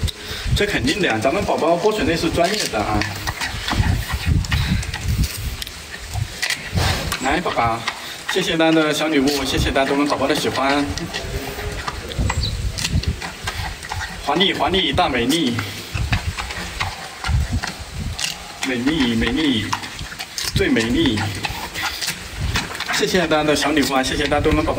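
A panda crunches and chews bamboo up close.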